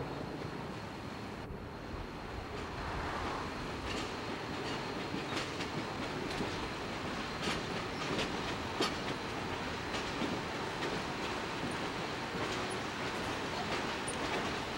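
Railway passenger cars rumble past on the track.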